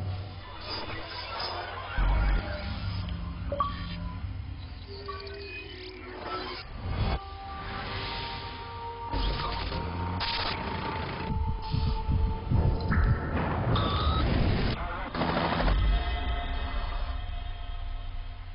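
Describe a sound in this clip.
Dramatic electronic music plays with deep booming hits and whooshes.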